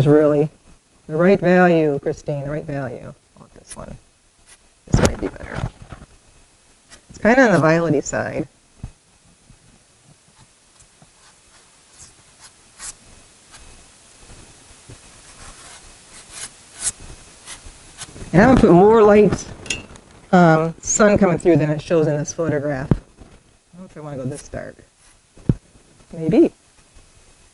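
A woman speaks calmly and close by, explaining.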